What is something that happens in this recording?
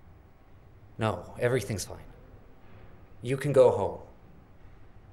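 A man speaks calmly and quietly close by.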